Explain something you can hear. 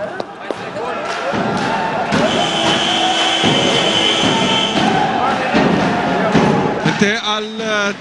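A large crowd cheers and shouts in an echoing hall.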